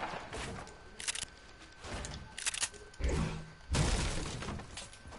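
A pickaxe strikes and smashes through wood with sharp cracks.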